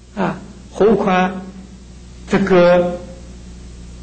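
An elderly man speaks calmly and slowly into a microphone, with short pauses.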